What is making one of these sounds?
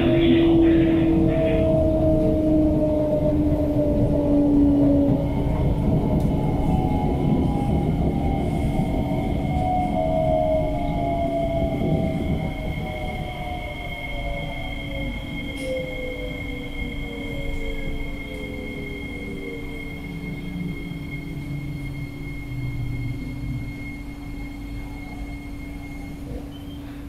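Train wheels rumble on rails, growing quieter as the train slows down.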